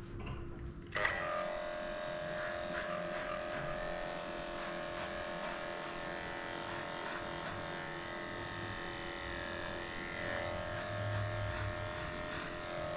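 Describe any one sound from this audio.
Electric clippers buzz steadily as they shave a dog's fur.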